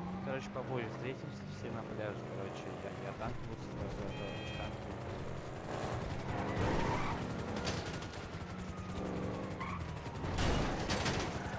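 Car tyres screech as the car skids through turns.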